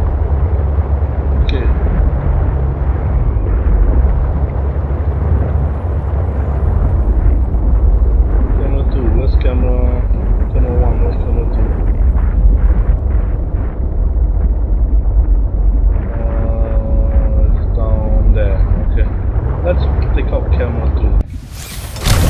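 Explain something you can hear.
An underwater scooter hums as it pushes through water.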